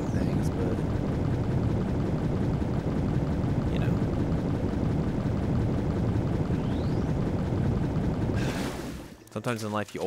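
Water rushes and churns loudly.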